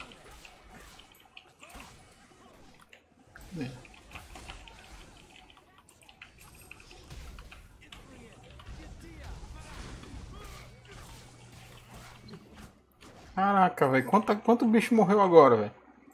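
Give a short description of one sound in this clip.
Magic spells zap and crackle in a fight.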